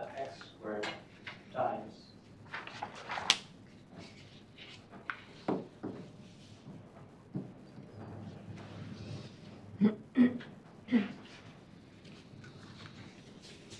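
A pen scratches softly on paper as it writes.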